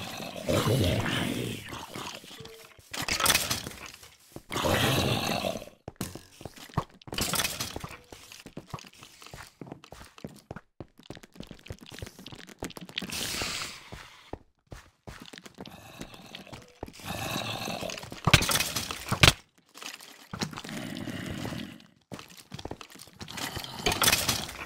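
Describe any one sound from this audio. A sword strikes monsters with short, dull hits.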